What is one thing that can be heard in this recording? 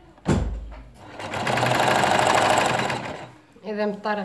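A sewing machine runs fast, stitching with a steady whirring rattle.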